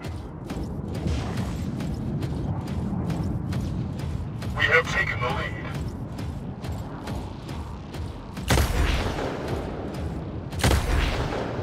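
Guns fire in rapid, repeated shots.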